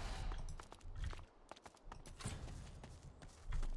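Electricity crackles and snaps in sharp bursts.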